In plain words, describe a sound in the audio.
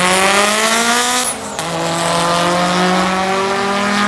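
Two car engines roar loudly as the cars accelerate away.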